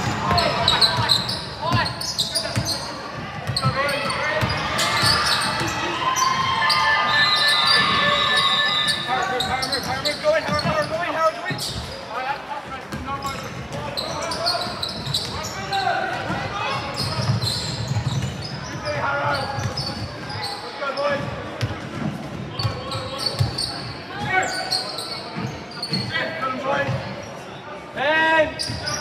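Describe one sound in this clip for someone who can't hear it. A crowd of spectators talks and cheers in the echoing hall.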